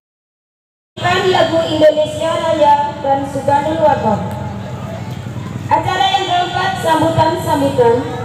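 A man chants through loudspeakers outdoors.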